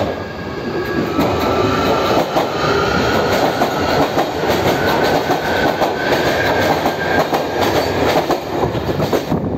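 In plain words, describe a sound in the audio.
Train brakes squeal with a high, drawn-out whine.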